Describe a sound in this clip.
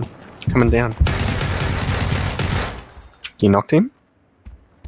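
A submachine gun fires a rapid burst indoors.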